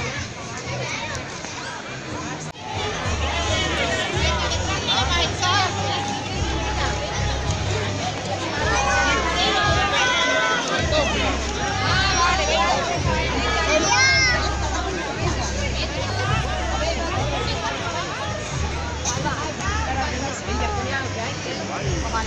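A crowd of adults and children chatters and calls out nearby outdoors.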